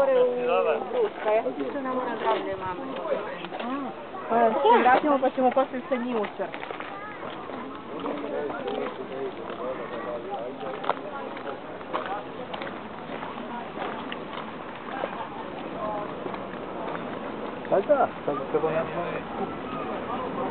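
Men and women chatter nearby outdoors.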